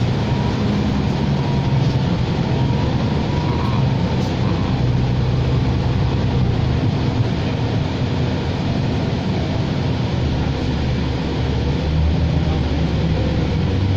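Tyres hiss on a wet, slushy road.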